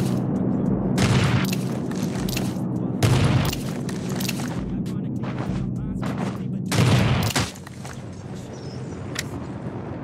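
Loud rifle shots ring out, one at a time.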